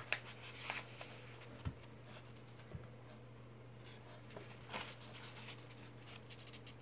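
Paper pages rustle and flap as a book is handled close by.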